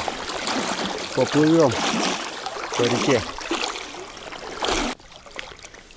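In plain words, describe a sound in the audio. Water rushes and splashes close by.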